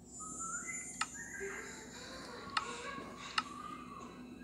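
Menu buttons in a game click as tabs are switched.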